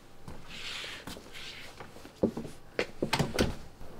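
A door opens and closes.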